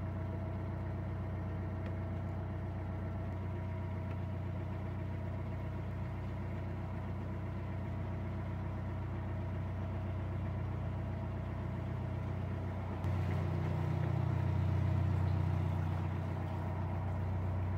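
A narrowboat engine chugs with a steady low throb.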